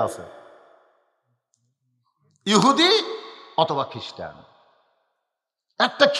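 A man preaches forcefully into a microphone, heard through loudspeakers with echo.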